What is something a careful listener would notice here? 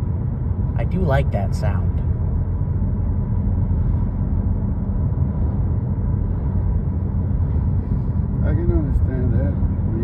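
A car engine rumbles low and steady, heard from inside the car.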